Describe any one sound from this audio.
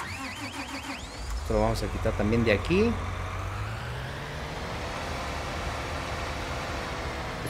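A tractor engine idles with a low, steady rumble.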